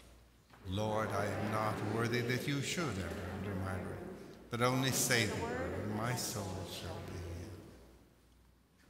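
An elderly man sings a chant through a microphone in a large echoing hall.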